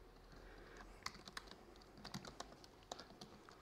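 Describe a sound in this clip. Laptop keys click as someone types.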